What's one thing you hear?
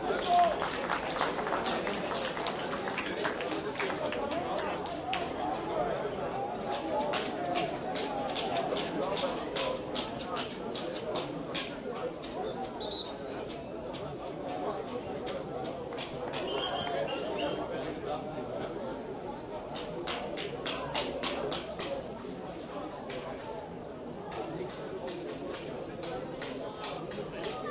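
Young men call out to each other across an open outdoor pitch.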